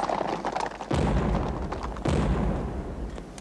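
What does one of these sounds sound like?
A cannon fires with a deep boom.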